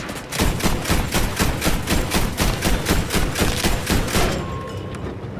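An anti-aircraft gun fires in rapid, loud bursts.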